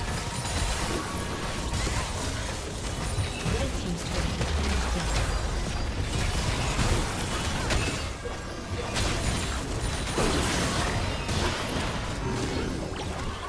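Magic spell effects whoosh and crackle in quick bursts.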